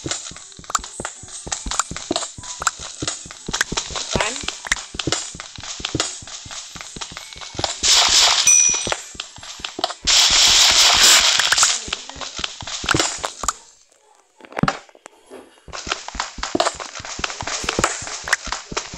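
A pickaxe taps rapidly against stone and dirt blocks.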